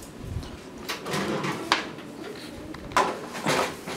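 A metal baking tray scrapes and clatters into an oven.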